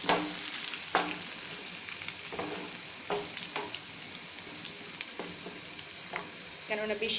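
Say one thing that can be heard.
Food sizzles steadily in hot oil in a pan.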